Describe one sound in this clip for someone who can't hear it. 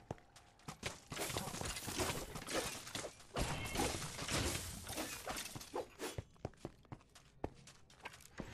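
Weapons clash and strike skeletons in a fight.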